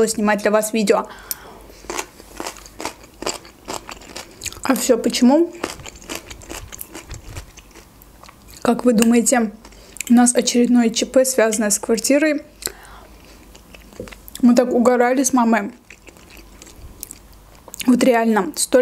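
A young woman chews food with wet, crunchy sounds close to a microphone.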